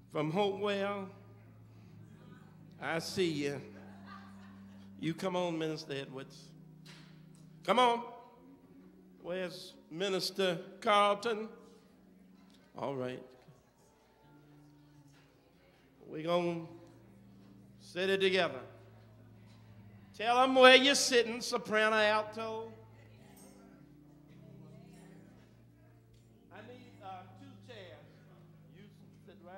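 A man speaks with animation into a microphone in an echoing hall, pausing between phrases.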